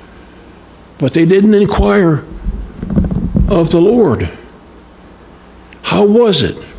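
An elderly man reads aloud calmly into a microphone.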